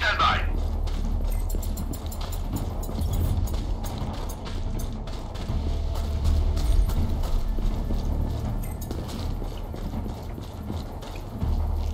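Footsteps crunch on gravel and dirt.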